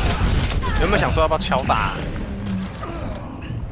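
Gunshots fire rapidly in a game.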